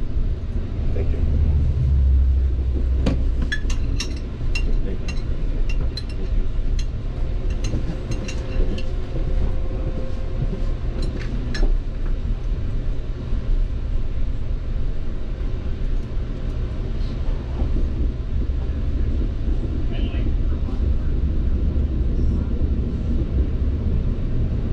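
A train rumbles steadily along the tracks, heard from inside the carriage.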